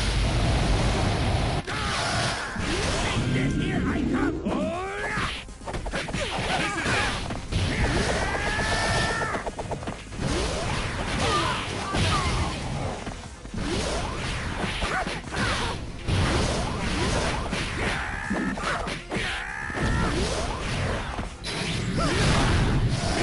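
Energy blasts whoosh and burst loudly.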